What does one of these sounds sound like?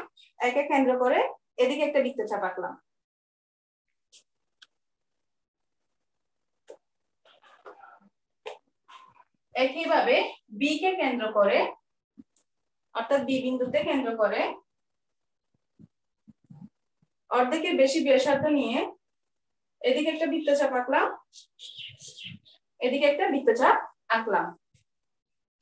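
A woman explains calmly in short phrases, close to a microphone.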